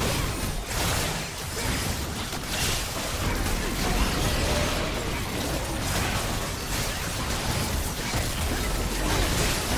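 Magic blasts crackle and whoosh in a busy fight.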